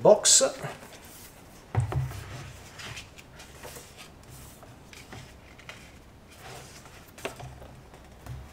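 Glossy book pages rustle and flip as a hand turns them.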